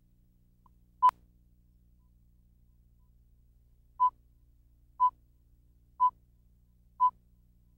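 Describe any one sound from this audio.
A countdown beeps in short, even tones once a second.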